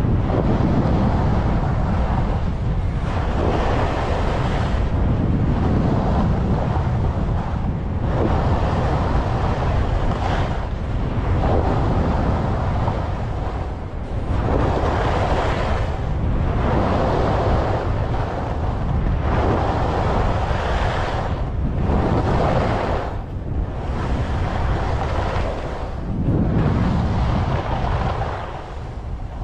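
Skis carve and scrape over packed snow in rhythmic turns.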